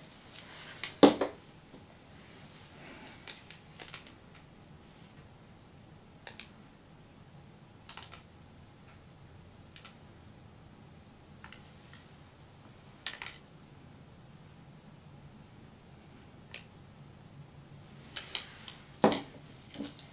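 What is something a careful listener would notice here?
A plastic cup knocks down onto a table.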